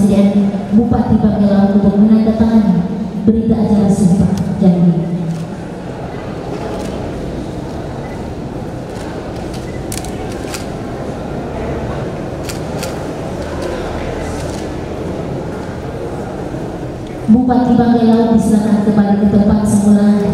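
A man speaks slowly and loudly into a microphone, heard through loudspeakers in an echoing hall.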